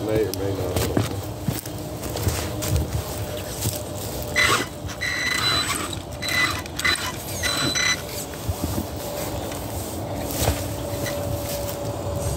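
Footsteps crunch on gravel and dry leaves.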